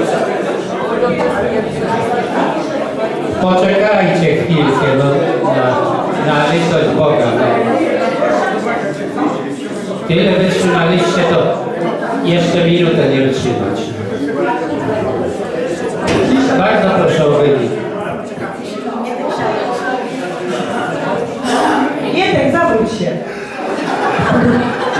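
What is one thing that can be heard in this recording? A man speaks at length through a microphone in a room that echoes.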